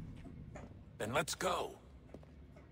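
A man with a deep voice speaks calmly.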